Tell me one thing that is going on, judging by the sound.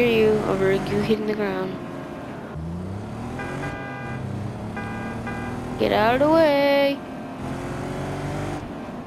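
A car engine hums and revs as the car speeds along a road.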